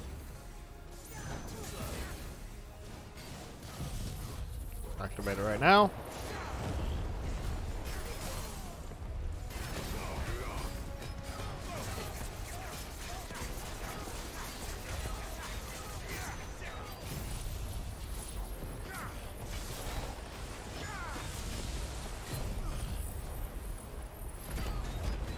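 Game combat sounds of blows, crackling electricity and blasts play steadily.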